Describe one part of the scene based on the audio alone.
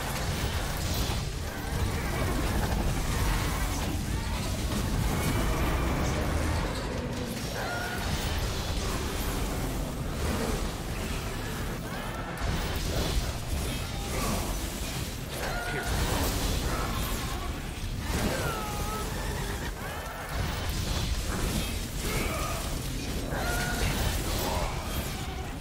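Sword slashes and magic blasts crash again and again in a fast fight.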